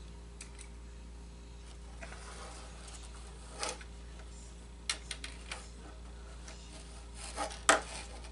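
Thin wire clicks and scrapes.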